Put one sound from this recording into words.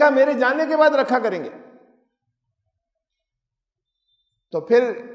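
An elderly man speaks emphatically into a headset microphone.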